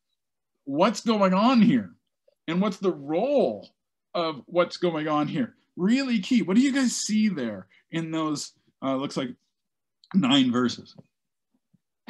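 A man speaks with animation over an online call.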